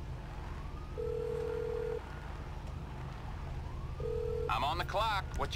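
A phone line rings with short tones.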